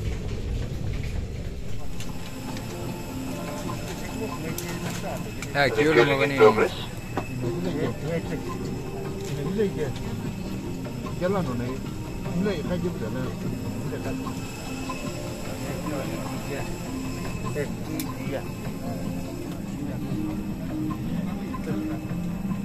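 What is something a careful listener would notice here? A steady low hum of an aircraft cabin fills the air.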